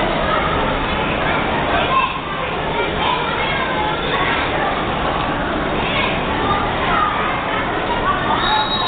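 A crowd of children murmurs and chatters in a large echoing hall.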